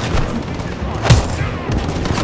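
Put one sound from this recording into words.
A sharp heavy blow lands at close range.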